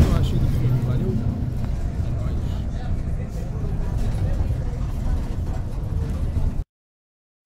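A vehicle's engine rumbles steadily as it drives.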